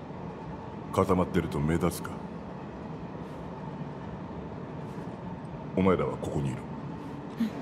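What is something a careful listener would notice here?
A man speaks in a deep, low voice.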